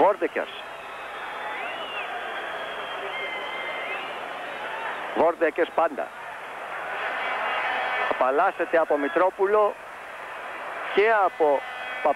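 A large crowd roars steadily in an open stadium.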